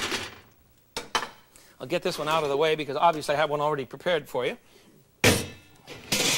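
Metal pots and utensils clank.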